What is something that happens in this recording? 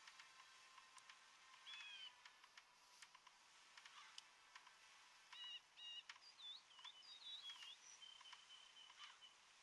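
Soft interface clicks sound as menu buttons are pressed.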